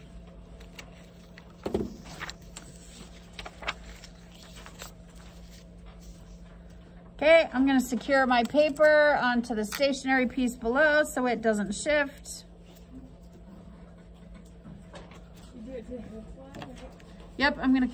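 Paper rustles and slides as hands move pattern pieces.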